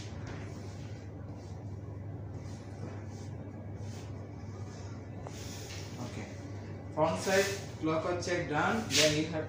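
Fabric rustles softly as a shirt is smoothed and folded.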